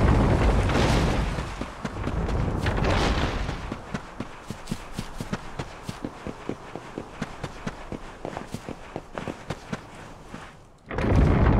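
Quick footsteps patter on the ground.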